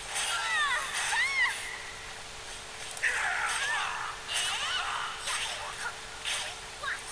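Sword blows land with sharp impacts.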